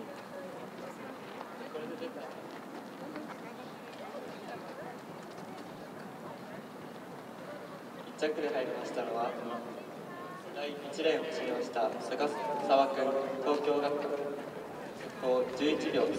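A crowd of spectators chatters in the distance outdoors.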